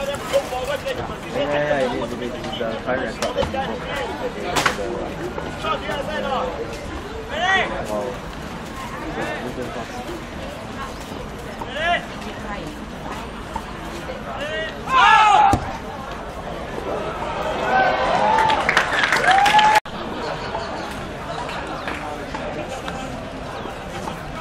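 A crowd of spectators shouts and cheers outdoors at a distance.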